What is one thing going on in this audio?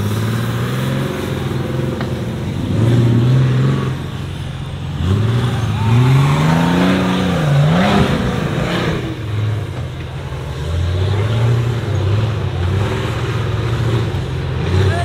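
An off-road buggy engine revs hard, rising and falling in pitch.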